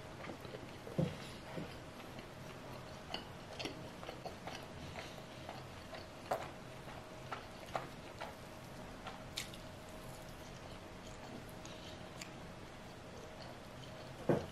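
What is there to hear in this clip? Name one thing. A young woman chews food close to a microphone with soft crunching and smacking.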